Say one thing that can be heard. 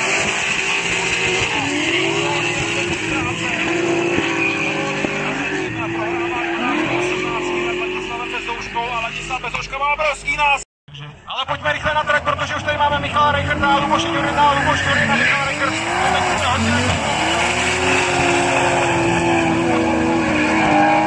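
Tyres screech as cars slide around a track.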